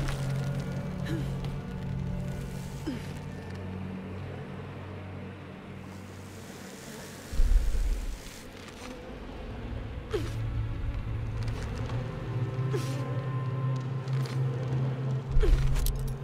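A rope creaks and slides as a climber descends.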